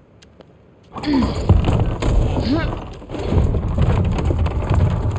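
A heavy wooden door creaks and rumbles open.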